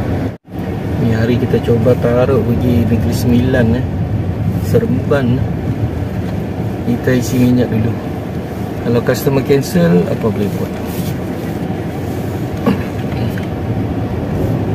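A middle-aged man talks calmly inside a car.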